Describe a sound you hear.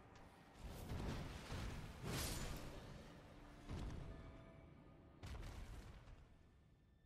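Heavy weapon blows strike with loud crunching thuds.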